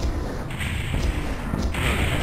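A heavy weapon fires with a fiery blast.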